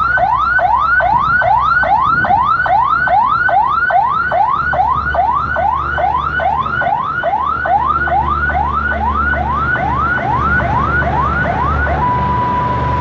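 A siren on a train whoops rapidly over and over.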